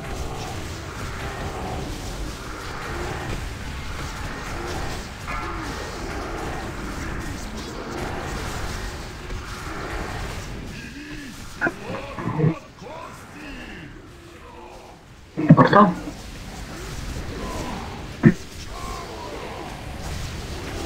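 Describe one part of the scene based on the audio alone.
Spell effects crackle and burst in a game battle.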